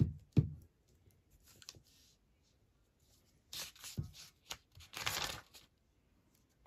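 A glue stick rubs across paper.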